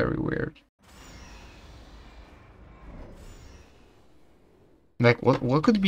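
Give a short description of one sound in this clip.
A heavy metal door slides open with a low rumble.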